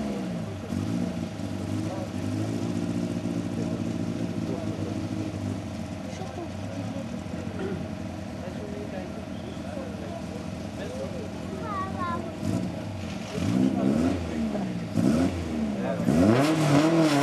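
A rally car engine idles and revs.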